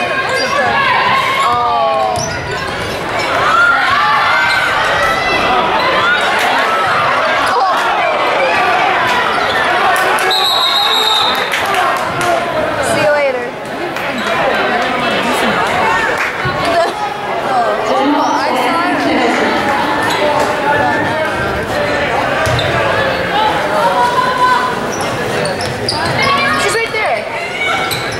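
Spectators chatter and call out in a large echoing gym.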